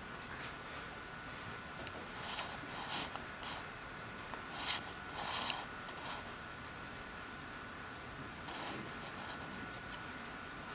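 A pen scratches softly on a drawing tablet.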